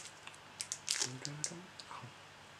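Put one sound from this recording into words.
Plastic crinkles between a young man's fingers.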